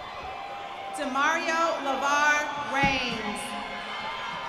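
A young woman cheers loudly with excitement.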